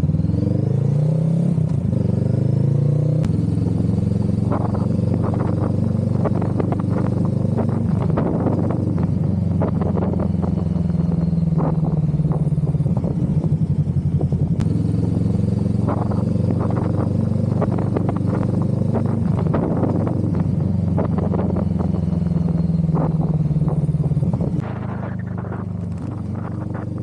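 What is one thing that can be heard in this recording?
A motorcycle engine drones steadily, its pitch rising and falling as it speeds up and slows.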